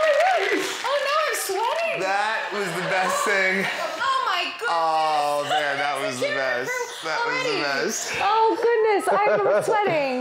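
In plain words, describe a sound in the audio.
A young woman talks excitedly.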